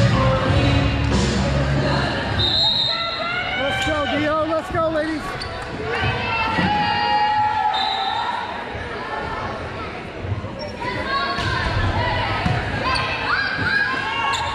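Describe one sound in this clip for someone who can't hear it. Young women on a team call out and cheer in a large echoing gym.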